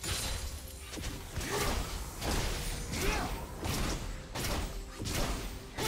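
Spells and weapon strikes crackle and whoosh in a fast fight.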